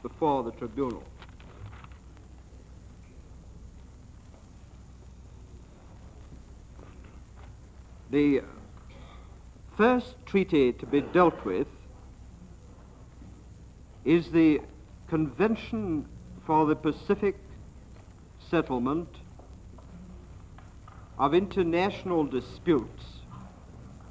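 A middle-aged man speaks calmly in short bursts with pauses.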